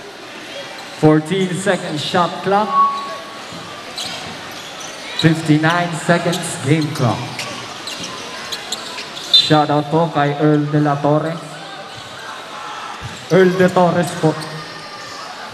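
A man speaks loudly through a loudspeaker in a large echoing hall.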